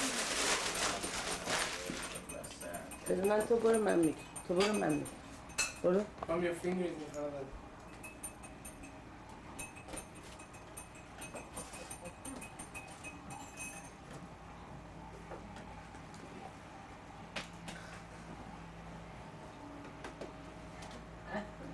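Dishes and cutlery clink on a table.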